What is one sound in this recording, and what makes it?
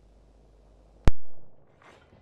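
A game menu opens with a sharp click.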